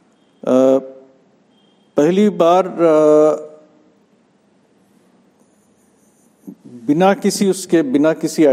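An elderly man speaks calmly and thoughtfully, close by, with pauses.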